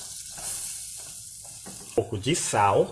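Chopped onions tumble into a pan with a soft rustle.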